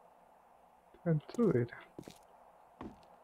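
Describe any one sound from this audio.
A young man speaks.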